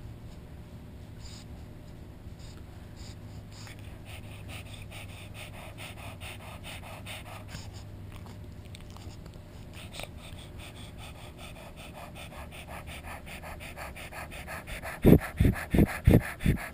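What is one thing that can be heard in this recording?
A small dog snorts and pants right up close.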